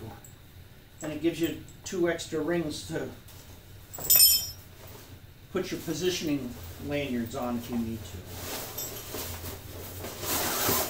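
A fabric bag rustles as it is handled.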